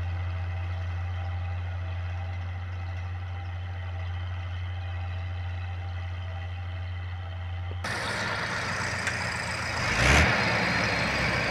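A tractor engine hums steadily as it pulls a plough across a field.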